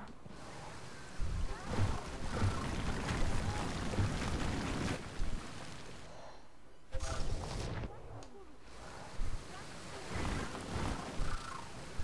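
A fiery blast roars with a loud whoosh.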